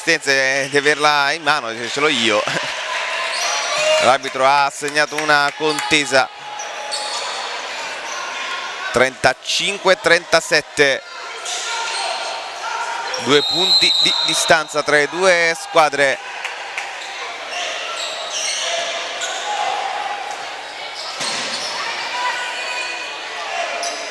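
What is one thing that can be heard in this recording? A crowd murmurs in an echoing gym.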